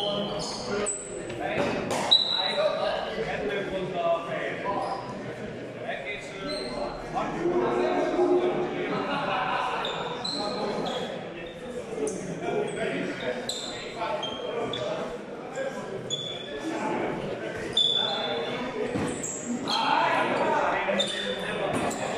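Footsteps shuffle and squeak on a hard floor.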